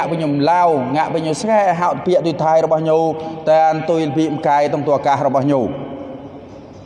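A man chants in a sustained, melodic voice through a microphone in an echoing room.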